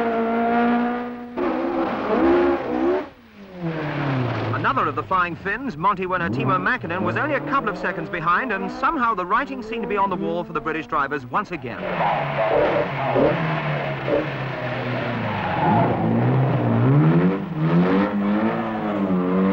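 Rally car engines roar and rev hard as the cars race past.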